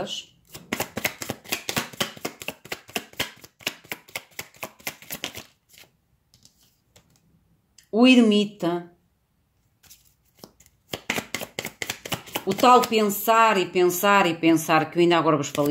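Playing cards shuffle and flick with quick, crisp riffling clicks.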